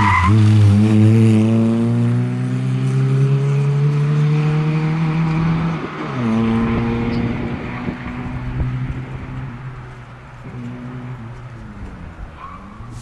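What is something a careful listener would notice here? A small rally hatchback's engine revs hard and shifts up through the gears as it speeds away.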